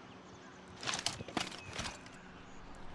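A gun clatters as it is swapped for another.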